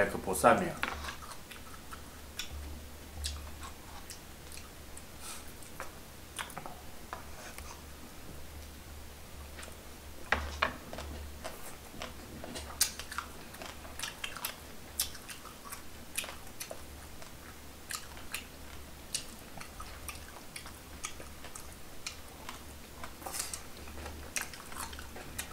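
Chopsticks click against dishes.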